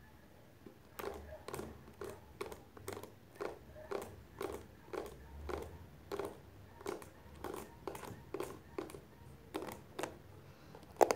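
A brush's bristles scratch in a steady rhythm close to the microphone.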